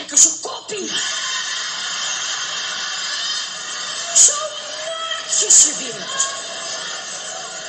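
A young person speaks close to a microphone with exaggerated, theatrical expression.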